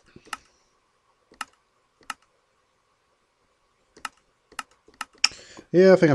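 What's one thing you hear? Menu buttons click sharply, one at a time.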